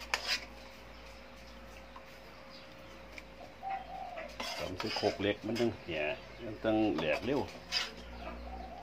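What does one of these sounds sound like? A metal spoon clinks and scrapes against a metal pot.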